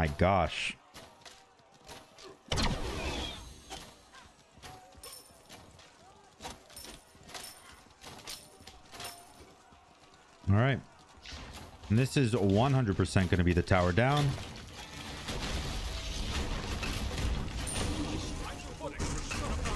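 Video game spell effects whoosh and clash.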